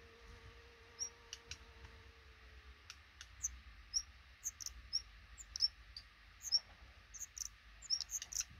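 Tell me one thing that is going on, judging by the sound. Nestling birds cheep in high, thin peeps.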